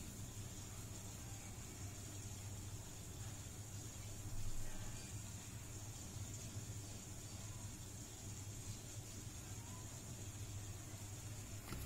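A glue stick rubs across paper.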